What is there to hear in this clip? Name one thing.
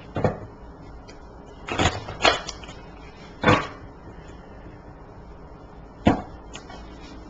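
Playing cards rustle and tap as hands shuffle them.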